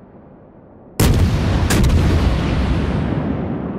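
Heavy naval guns fire with a loud boom.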